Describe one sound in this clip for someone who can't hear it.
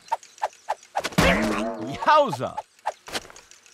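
A loud cartoon bump thumps and bounces.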